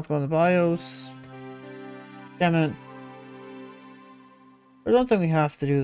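A computer start-up chime rings out and slowly fades.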